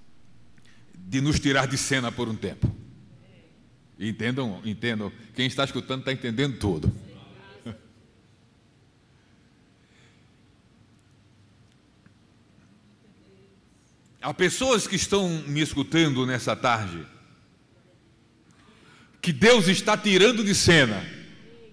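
A middle-aged man preaches with passion into a microphone, heard through loudspeakers in a large echoing hall, with long pauses between bursts.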